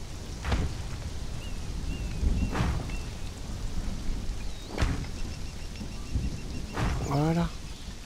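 Building pieces thud into place with sharp knocks.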